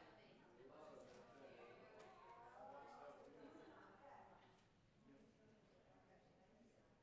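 A crowd of adults murmurs and chats quietly in a large echoing room.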